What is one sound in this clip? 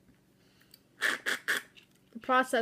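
A woman slurps a drink loudly through a straw.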